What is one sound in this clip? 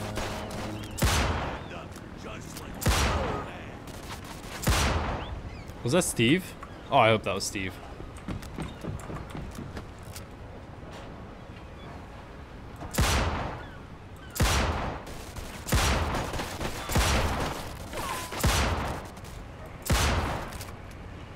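Gunshots ring out in sharp, loud bursts.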